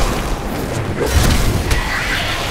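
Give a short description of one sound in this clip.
A fireball bursts with a roar.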